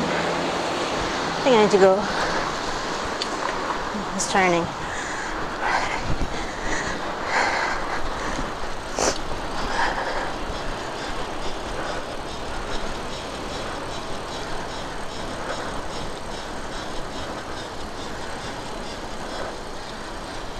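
A car drives along a city street with a steady rumble of tyres and engine.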